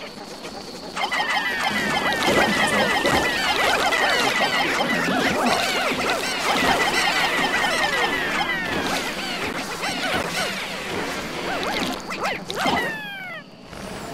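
Many small creatures chirp and squeak in high, quick voices.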